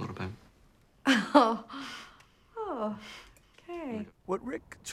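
A woman speaks cheerfully and with animation nearby.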